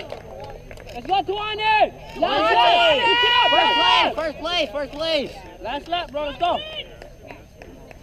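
Spectators cheer and shout loudly as runners pass.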